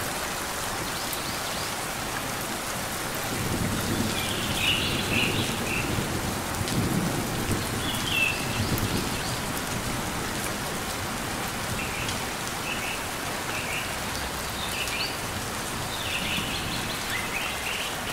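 A small bird chirps in short, high bursts.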